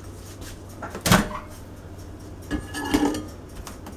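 A microwave door clicks open.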